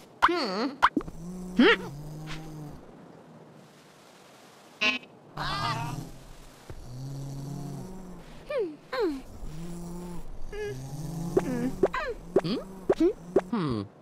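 Cartoon characters snore softly in a slow, steady rhythm.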